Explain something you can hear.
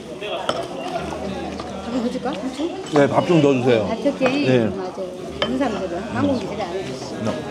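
A man off to one side speaks up close.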